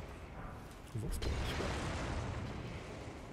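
Flames burst with a loud whoosh.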